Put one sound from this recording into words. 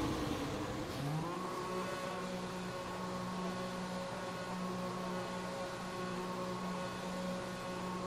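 A racing car engine drones steadily as the car drives along.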